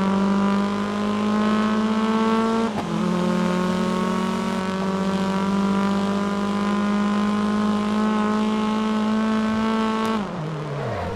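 A racing car engine roars at high revs, rising steadily in pitch.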